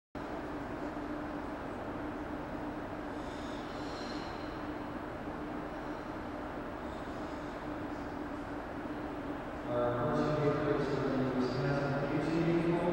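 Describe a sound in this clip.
A crowd murmurs in a large echoing rink.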